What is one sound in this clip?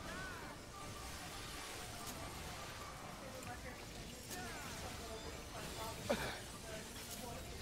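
Magic spell effects chime and whoosh in a fast battle.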